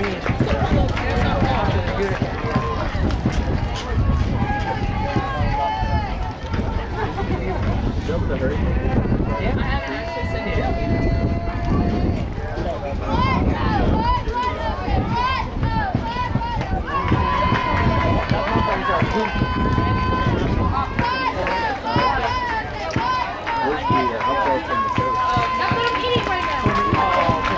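Young women and girls shout and cheer outdoors across an open field.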